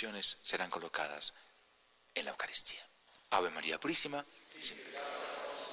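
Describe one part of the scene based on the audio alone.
A man speaks aloud in an echoing room.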